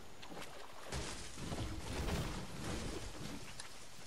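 A pickaxe chops at a tree with heavy thuds.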